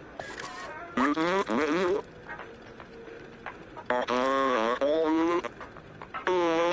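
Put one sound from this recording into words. A robot babbles in a warbling electronic voice.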